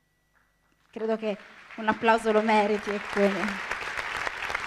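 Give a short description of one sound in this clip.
A young woman sings a short phrase into a microphone.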